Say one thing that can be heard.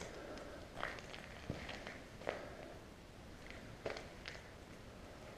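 Footsteps crunch over loose rubble in a large, echoing empty hall.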